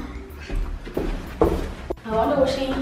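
Footsteps climb a stairway.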